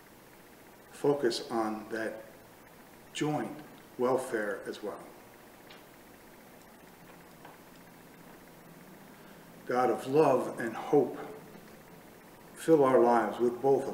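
An older man speaks calmly and slowly into a nearby microphone, with pauses between phrases.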